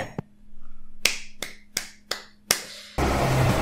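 A man claps his hands several times.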